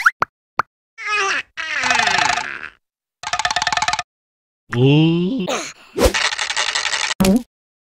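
A second cartoon creature shouts and jabbers excitedly in a high voice.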